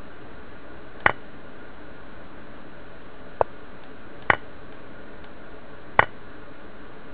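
Short wooden clicks sound as chess pieces are moved.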